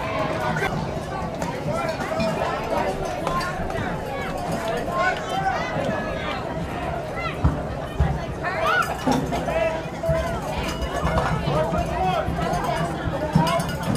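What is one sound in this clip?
Young players call out to each other on the field.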